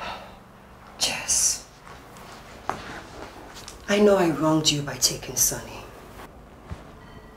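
A woman speaks with feeling, close by.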